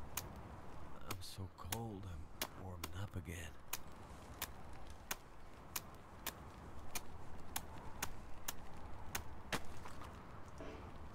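A tool chops at ice with sharp, steady knocks.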